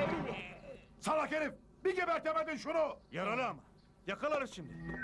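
An elderly man shouts loudly.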